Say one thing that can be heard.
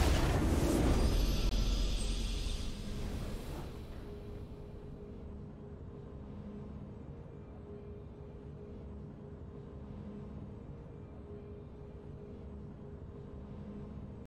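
A triumphant game fanfare plays, then settles into soft, steady music.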